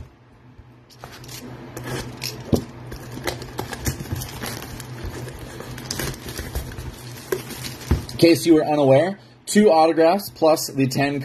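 A cardboard box rustles and scrapes as hands turn it over.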